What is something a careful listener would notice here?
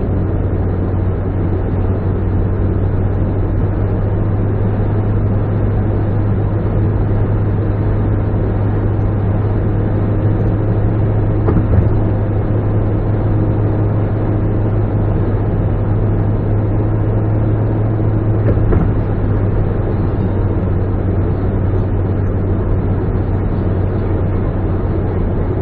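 A car engine hums steadily at highway speed.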